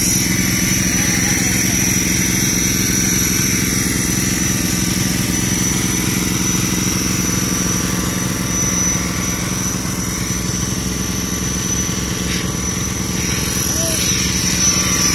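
A small engine pump chugs steadily nearby.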